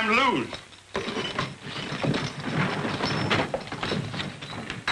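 A wooden chair scrapes and clatters.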